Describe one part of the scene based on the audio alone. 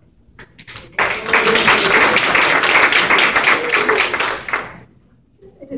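A group of people applauds warmly.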